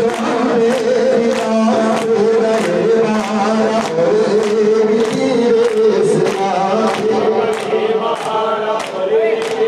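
A man leads the chant through a microphone.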